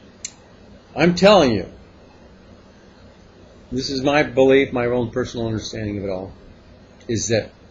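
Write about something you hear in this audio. An older man speaks calmly and close by, with pauses.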